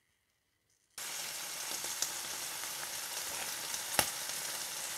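Food sizzles loudly as it fries in a hot pan.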